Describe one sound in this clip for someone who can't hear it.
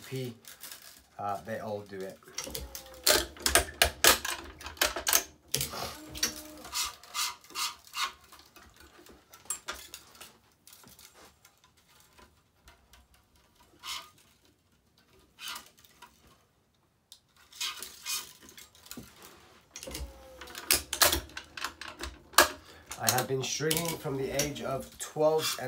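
Taut strings twang and rattle as they are pulled and plucked.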